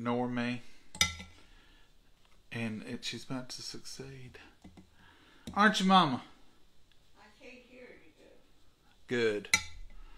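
A spoon scrapes and taps in a bowl.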